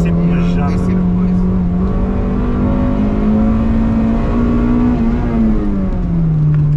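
Road noise rumbles steadily beneath the car.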